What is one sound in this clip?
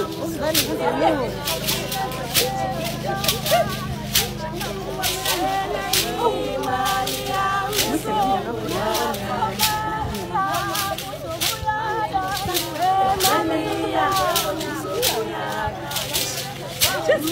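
A group of young women sing together loudly outdoors.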